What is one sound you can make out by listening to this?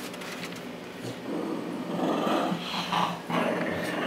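Dogs snuffle and scuffle close by.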